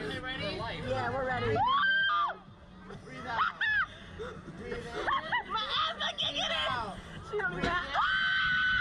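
Two young women talk excitedly, close by.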